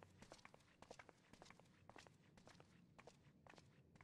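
Footsteps tap softly on a stone floor.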